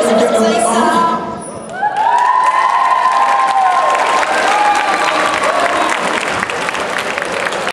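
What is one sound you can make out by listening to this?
A group of young people sings together in a large echoing hall.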